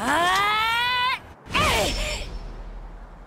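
A young woman shouts fiercely, her voice rising.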